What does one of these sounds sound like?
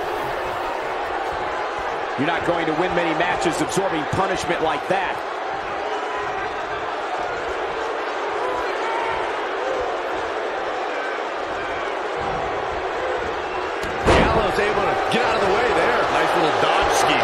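A large crowd cheers and murmurs in an arena.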